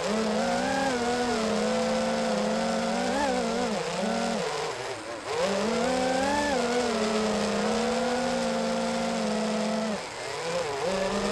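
Drone propellers whine loudly, rising and falling in pitch as the drone speeds up and slows.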